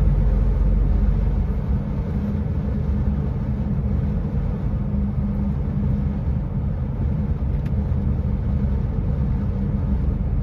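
A heavy vehicle's engine drones steadily as it drives.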